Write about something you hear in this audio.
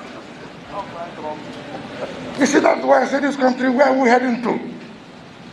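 A man speaks into a microphone through a loudspeaker, in a formal, deliberate voice.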